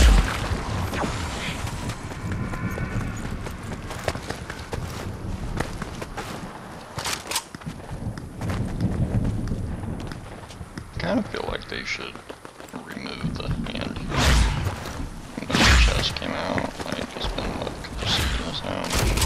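Footsteps run quickly over grass and rock.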